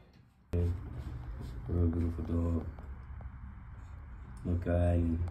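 A dog makes short, low grumbling howls close by.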